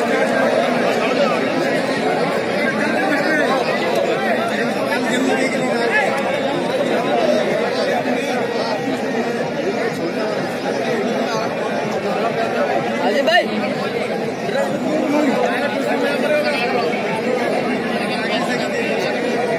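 A large outdoor crowd chatters and shouts steadily.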